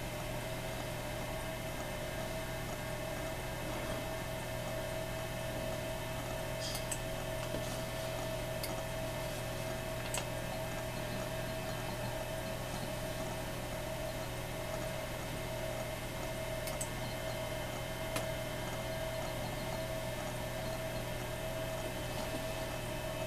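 An old computer hums steadily with a faint high whine.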